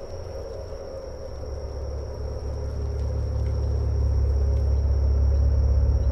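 A vehicle engine rumbles low, growing louder as it comes closer.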